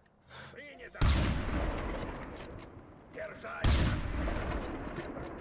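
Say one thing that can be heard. A rifle fires loud shots that echo and slowly fade.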